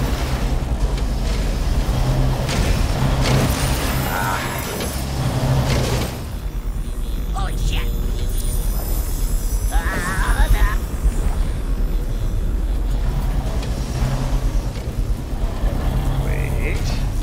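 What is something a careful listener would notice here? Game music and sound effects play steadily.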